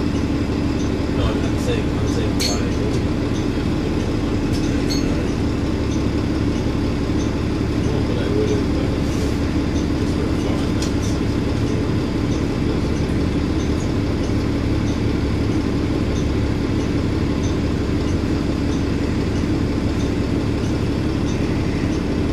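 A bus interior rattles and clicks as it moves.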